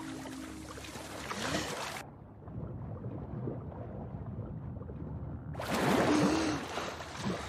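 Water splashes and sloshes as a person swims at the surface.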